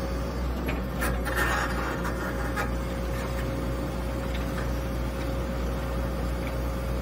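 An excavator bucket scrapes and clunks through wet earth.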